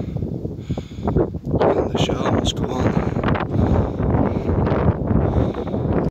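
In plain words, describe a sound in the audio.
Strong wind blows hard across the microphone outdoors.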